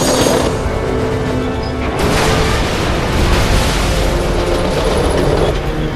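A huge metal structure creaks and crashes as it topples.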